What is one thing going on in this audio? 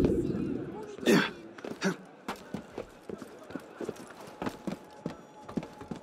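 Hands and feet scrape and thud while climbing a stone wall.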